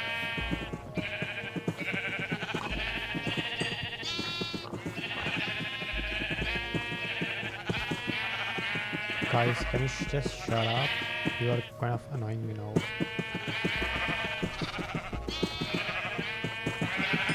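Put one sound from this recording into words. Many sheep bleat over and over, close by.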